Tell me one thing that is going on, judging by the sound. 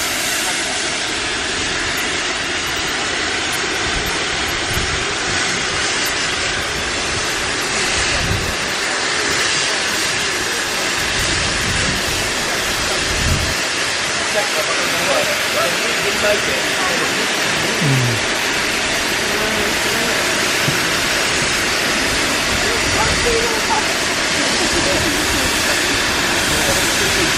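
Steam hisses loudly from a steam locomotive.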